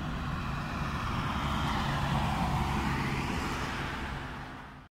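A pickup truck drives by close and fades away.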